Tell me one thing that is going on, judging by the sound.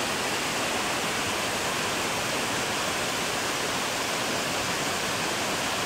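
A waterfall roars steadily, water crashing into a pool close by.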